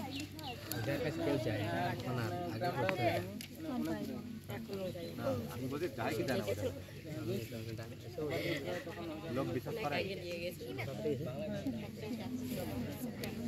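A man answers in conversation, close by.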